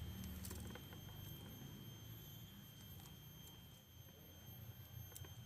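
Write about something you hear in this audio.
Wire rustles and clicks faintly as it is wound onto a branch.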